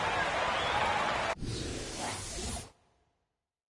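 A crowd roars in a large arena.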